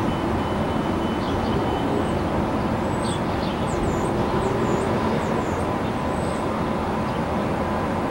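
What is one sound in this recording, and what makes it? A passenger train rumbles steadily along the tracks close by.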